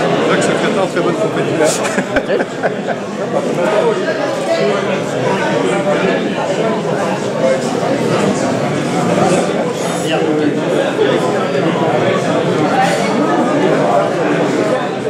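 A crowd of men and women chatter steadily in a large echoing hall.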